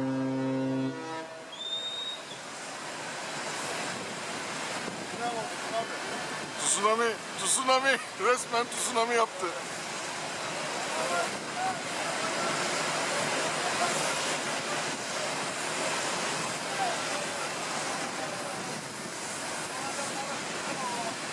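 A large ship's hull grinds and rumbles as it runs onto the shore.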